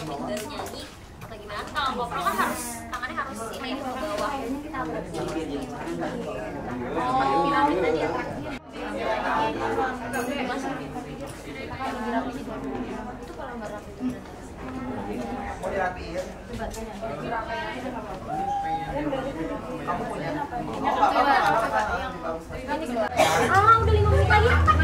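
Several young women chatter in the background.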